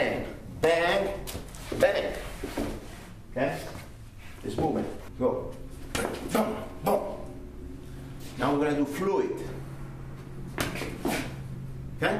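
Feet shuffle and thud on a padded floor.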